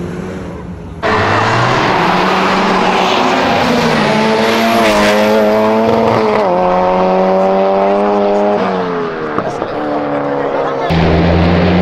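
A car engine roars loudly, changing up through the gears as it accelerates.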